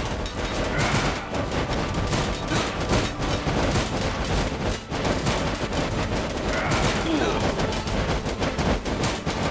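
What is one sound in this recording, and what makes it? Spears strike shields with sharp thuds.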